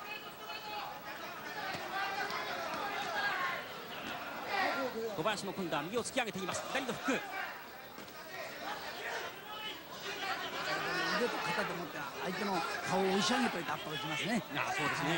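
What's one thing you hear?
A large crowd cheers and shouts throughout.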